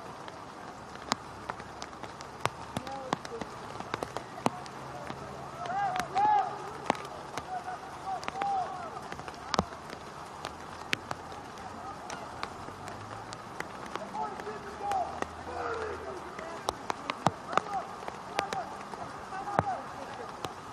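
Players shout to each other across an open field, heard from a distance.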